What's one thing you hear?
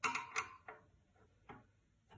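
A screwdriver scrapes as it turns a screw.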